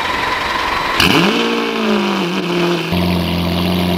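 A sports car engine starts with a loud roar.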